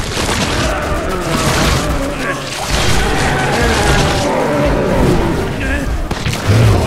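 A monstrous creature growls and snarls up close.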